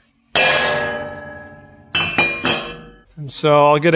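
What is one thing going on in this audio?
A metal mould knocks down onto a hard table.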